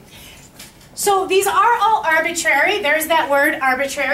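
A young woman explains clearly and with animation, close by.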